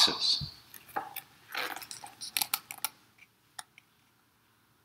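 A book's pages rustle as it is handled.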